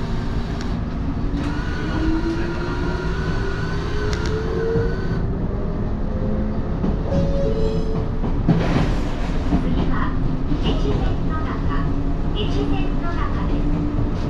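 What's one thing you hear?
A train rumbles steadily along the tracks, heard from inside the cab.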